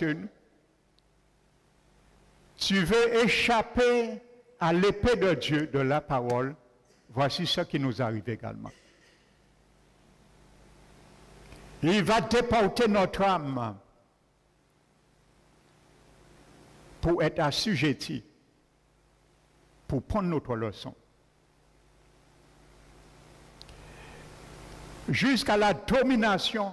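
A man preaches with animation through a microphone, in bursts with pauses, in a room with some echo.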